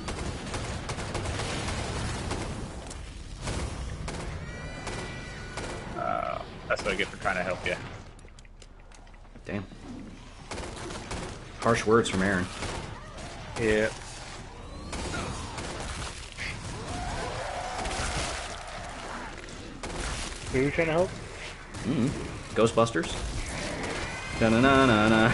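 Automatic rifle fire bursts rapidly and loudly.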